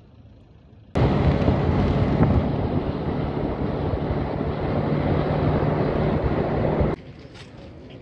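A vehicle engine rumbles loudly with wind rushing past.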